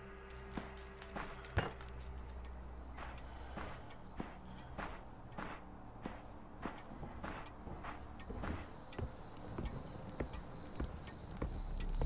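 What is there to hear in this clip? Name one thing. Footsteps thud slowly across a wooden floor.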